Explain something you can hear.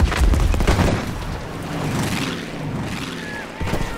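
A propeller plane roars past overhead.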